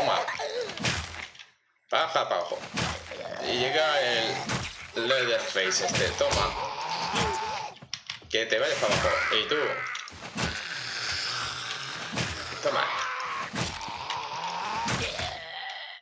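A weapon strikes flesh with heavy thuds.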